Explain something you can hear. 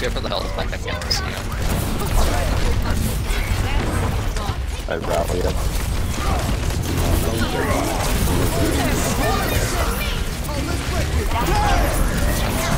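Game weapons fire in rapid bursts with zapping blasts.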